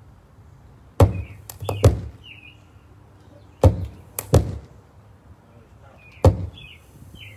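Loud thumps and pops burst from a loudspeaker.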